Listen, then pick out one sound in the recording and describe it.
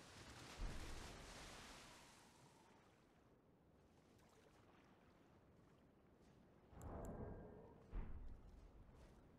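Water splashes heavily as a large creature stomps in a shallow lake.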